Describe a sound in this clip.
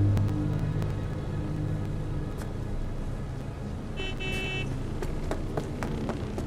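Footsteps tap on a wet hard floor.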